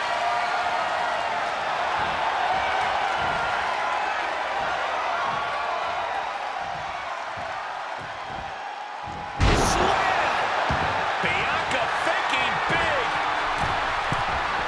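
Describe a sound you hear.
A large crowd cheers and roars throughout.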